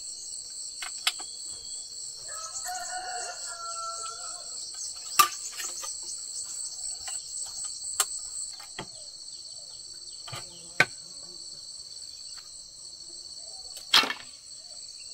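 Bamboo poles knock together with sharp hollow clacks.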